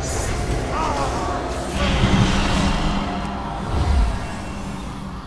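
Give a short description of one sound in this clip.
Magic spells burst and crackle in quick succession.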